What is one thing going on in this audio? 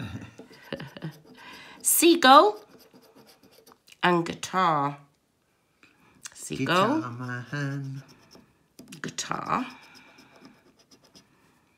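A coin scratches across a scratch card.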